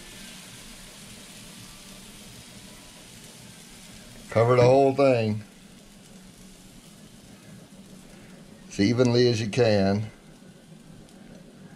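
Thick batter pours and splatters softly into a waffle iron.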